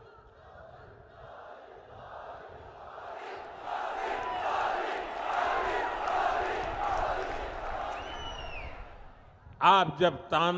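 A large crowd cheers and chatters loudly.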